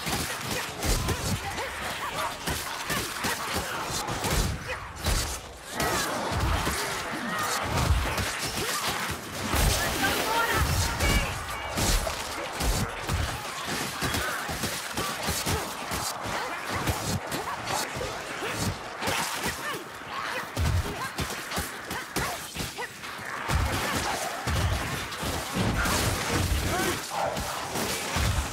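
A crowd of creatures snarls and screeches.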